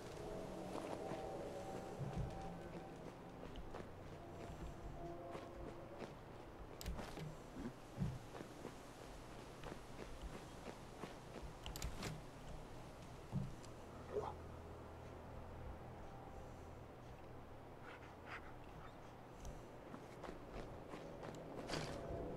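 Soft footsteps shuffle over rubble.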